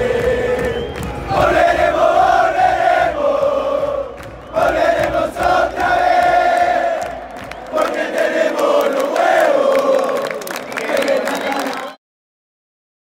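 A large stadium crowd sings and chants loudly in unison.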